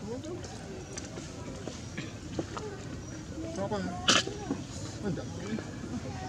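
A monkey munches on a banana.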